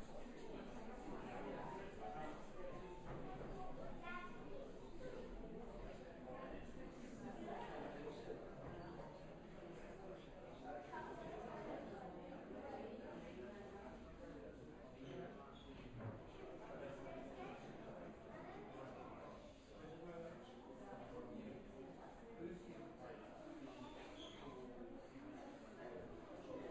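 An audience murmurs and chatters in a large, echoing hall.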